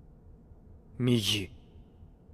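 A young man speaks quietly in a shaken voice.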